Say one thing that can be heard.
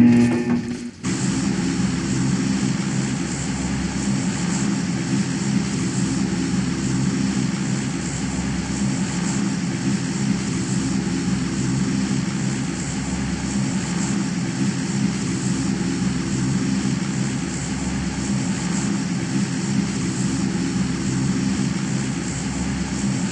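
A plane's engines drone steadily.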